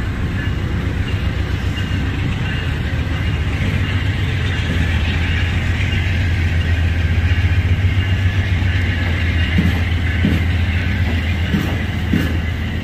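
A passenger train rumbles past close by on the tracks.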